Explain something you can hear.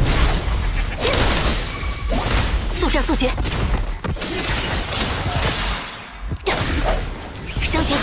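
Electric magic blasts crackle and slash in quick bursts.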